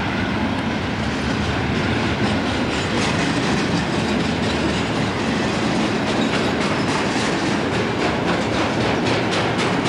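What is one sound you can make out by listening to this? Diesel locomotives roar loudly as a freight train passes close by.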